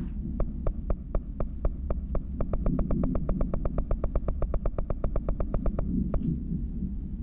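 A menu ticks rapidly with short clicks as it scrolls, speeding up and then stopping.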